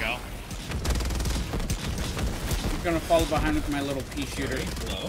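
Gunfire rattles rapidly in bursts.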